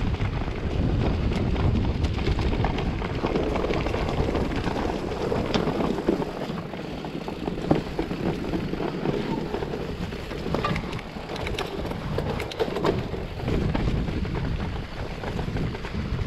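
A bicycle's chain and frame clatter over bumps.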